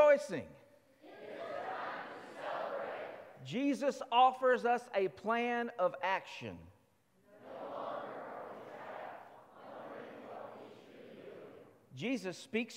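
A congregation reads aloud together in unison, murmuring in a large echoing hall.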